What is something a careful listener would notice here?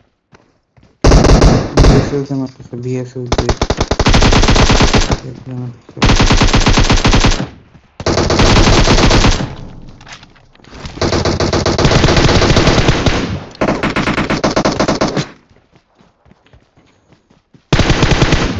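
Automatic rifle fire rattles in rapid, loud bursts.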